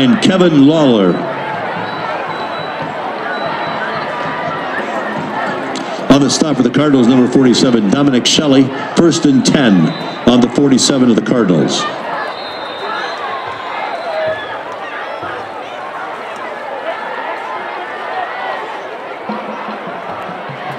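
A crowd murmurs and chatters in a large open stadium.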